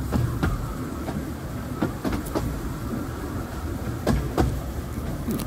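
A train rumbles along the rails with rhythmic clacking of its wheels.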